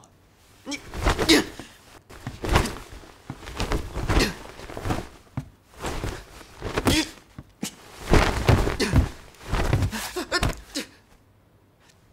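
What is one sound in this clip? Blows and scuffling land during a fight.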